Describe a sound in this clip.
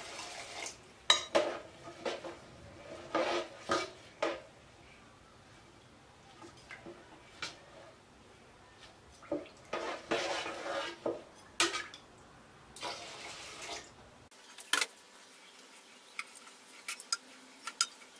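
A spoon scrapes and clinks against the side of a pot while stirring.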